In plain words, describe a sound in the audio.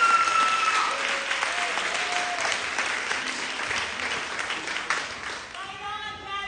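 Young women clap their hands.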